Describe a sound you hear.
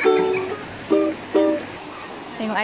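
A ukulele is plucked.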